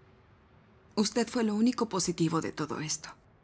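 A young woman speaks calmly and firmly.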